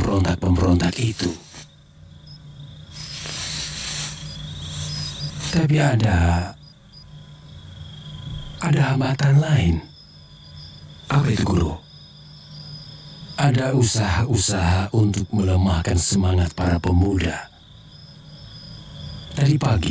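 An elderly man speaks slowly and gravely, close by.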